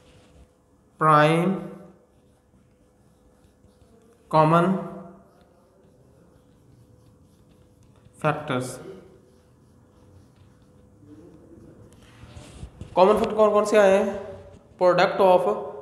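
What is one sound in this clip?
A man speaks calmly nearby in short phrases, with pauses.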